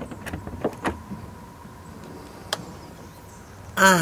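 A door clicks and swings open.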